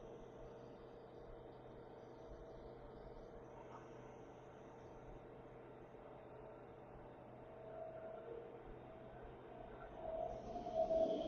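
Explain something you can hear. A train rolls past with a steady humming rumble.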